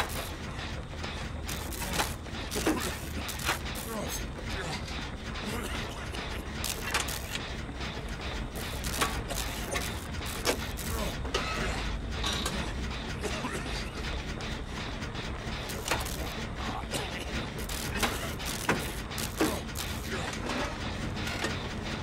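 Metal parts of a machine clatter and clank as it is repaired.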